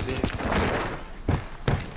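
An energy gun fires sharp shots.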